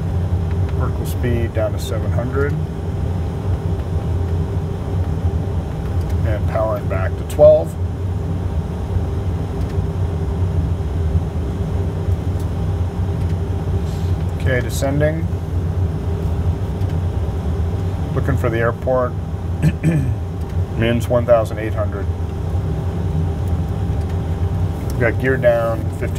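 A man speaks in short, calm phrases nearby.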